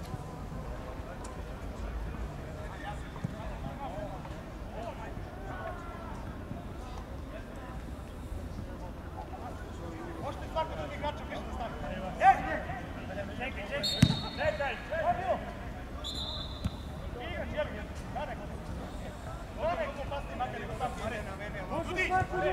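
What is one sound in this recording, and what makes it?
Distant young men shout to each other across an open field.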